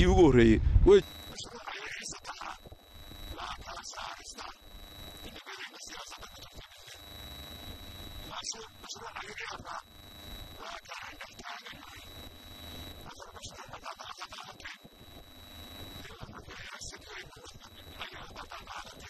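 An elderly man speaks steadily into a microphone.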